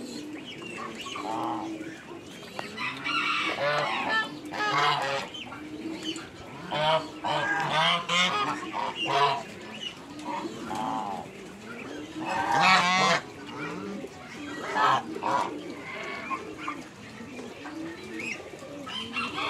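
A flock of domestic geese honks.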